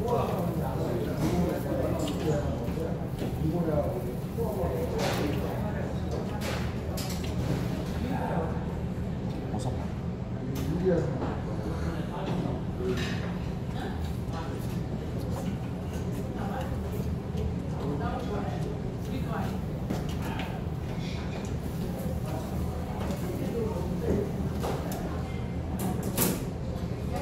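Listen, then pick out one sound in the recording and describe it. Metal tongs click against a grill.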